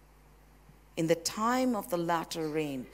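A woman speaks calmly into a microphone, heard through loudspeakers.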